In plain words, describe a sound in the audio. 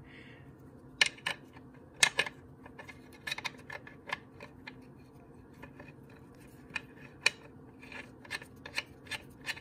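A metal bolt clicks and taps as it is threaded into place by hand.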